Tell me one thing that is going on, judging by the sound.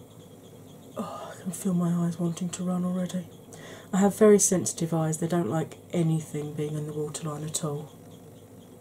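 A woman speaks softly and close to a microphone.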